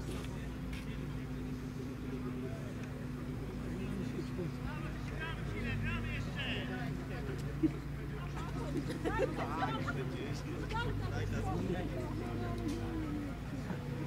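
Young men shout to one another in the distance outdoors.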